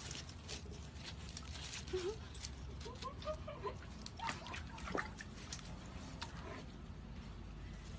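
A dog splashes through shallow water.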